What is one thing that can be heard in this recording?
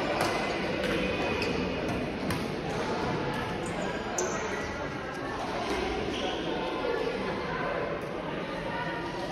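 Shuttlecocks are struck with rackets in sharp pops that echo around a large hall.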